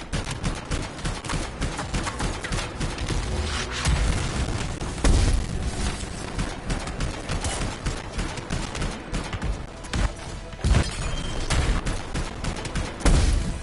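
Gunfire and explosions boom in a video game.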